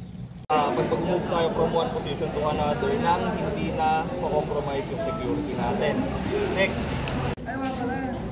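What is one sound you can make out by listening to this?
A young man talks calmly to a small group close by.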